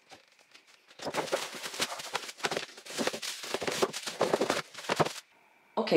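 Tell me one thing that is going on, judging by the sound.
Plastic bubble wrap crinkles and rustles as it is handled.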